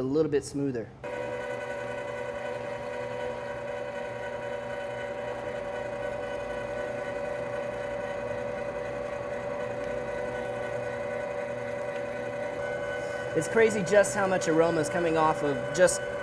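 A meat grinder motor hums steadily.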